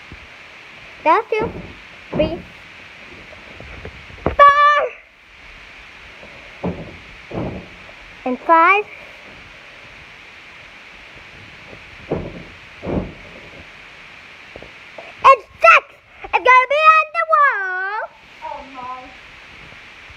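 A young child squeals and shouts excitedly close by.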